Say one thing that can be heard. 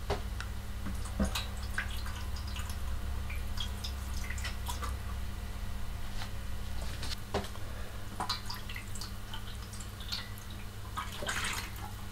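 Water pours and splashes into a metal tray.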